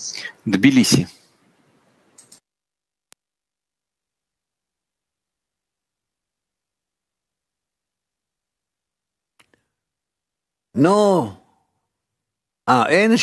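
A man speaks in short bursts, heard through an online call.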